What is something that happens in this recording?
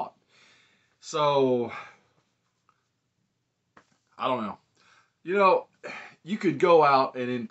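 A middle-aged man talks close by with animation, pausing between phrases.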